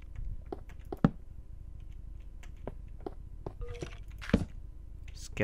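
A block is set down with a short, dull knock.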